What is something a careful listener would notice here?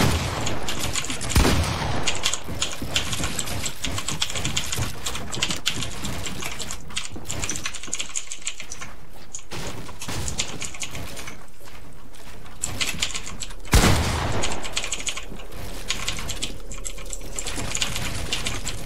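Mechanical keyboard keys clack rapidly throughout.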